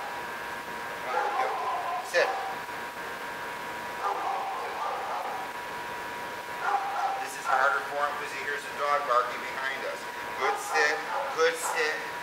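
An elderly man talks softly to a dog some distance away.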